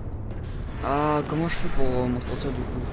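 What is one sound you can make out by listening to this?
A futuristic gun fires with a sharp, warbling zap.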